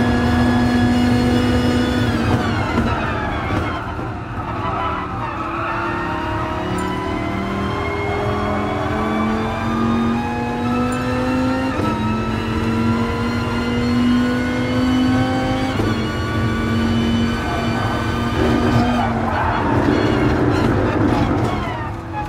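A racing car engine roars, its pitch dropping on braking and climbing as it shifts up through the gears.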